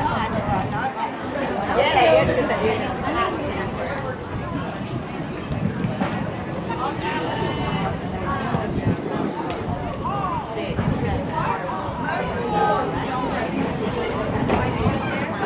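A crowd of spectators chatters and calls out at a distance outdoors.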